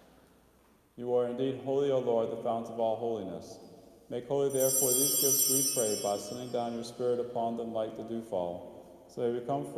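A man chants through a microphone in a large echoing hall.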